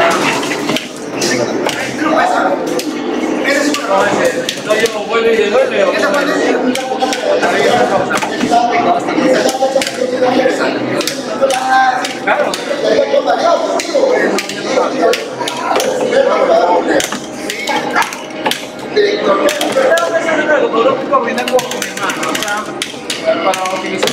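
Fighting game sound effects and music play from an arcade machine.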